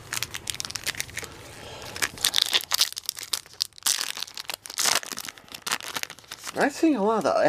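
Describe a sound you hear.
A foil booster pack crinkles as it is torn open.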